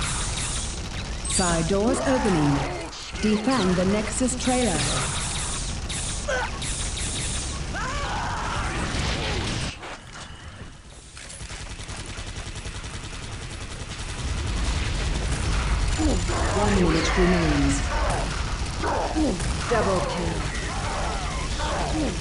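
A rapid-fire gun shoots in long bursts.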